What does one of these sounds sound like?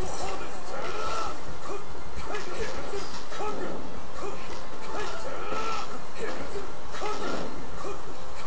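Upbeat game music plays through a small tablet speaker.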